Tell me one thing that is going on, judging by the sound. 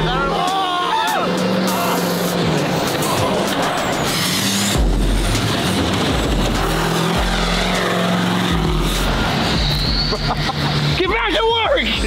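A truck engine roars and revs.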